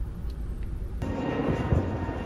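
A jet plane roars overhead.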